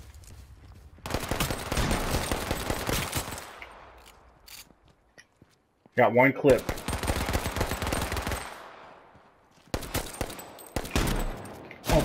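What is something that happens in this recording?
A pistol fires repeated shots that echo and fade outdoors.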